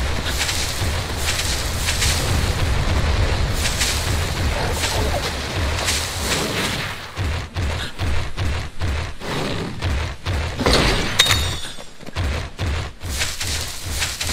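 A large creature's footsteps thud rhythmically as it runs over grass.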